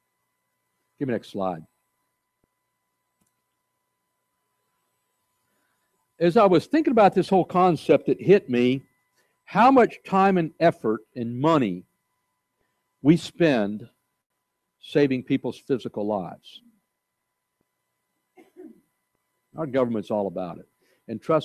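An older man speaks calmly through a microphone, with pauses.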